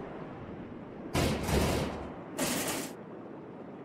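A metal shutter rattles as it is pushed open.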